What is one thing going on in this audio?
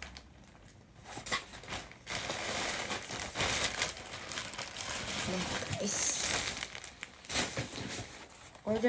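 A plastic mailer bag rustles and crinkles.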